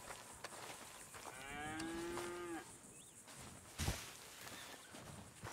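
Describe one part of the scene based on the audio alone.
A brush scrapes over a horse's coat.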